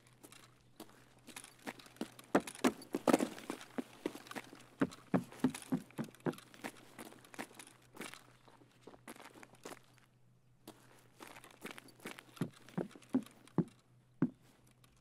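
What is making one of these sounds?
Footsteps thud and scrape on a hard floor.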